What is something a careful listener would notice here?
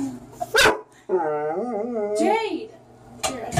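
A dog howls.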